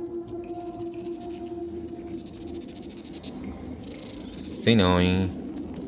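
Small footsteps patter on stone.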